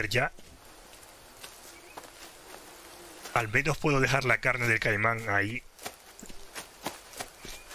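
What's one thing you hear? Large leaves rustle as someone pushes through dense plants.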